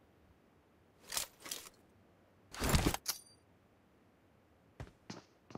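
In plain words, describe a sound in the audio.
Footsteps clatter on a tiled roof.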